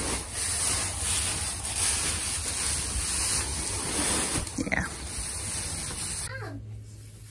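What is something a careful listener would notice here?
Straw rustles and crunches as a hay bale is shifted.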